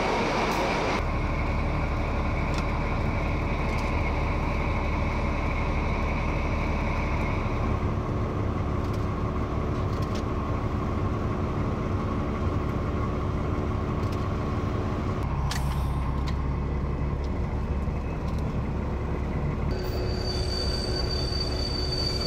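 A diesel engine drones steadily from inside the cab.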